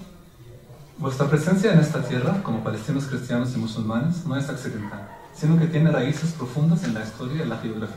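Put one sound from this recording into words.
A young man reads aloud into a microphone.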